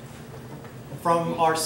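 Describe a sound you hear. An older man begins speaking through a microphone.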